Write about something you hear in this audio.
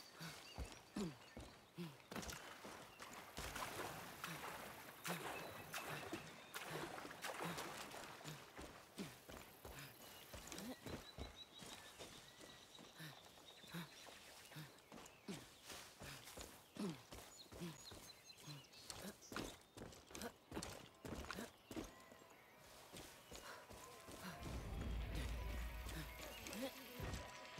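Footsteps tread steadily on grass and rock.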